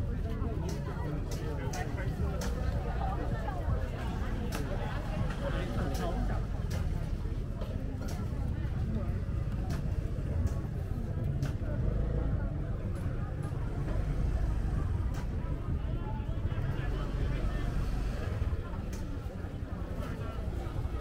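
A crowd of men and women chatters all around.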